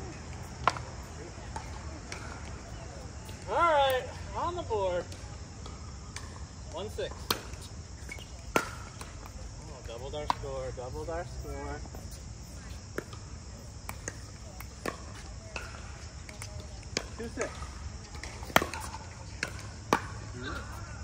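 Paddles strike a plastic ball with sharp pops.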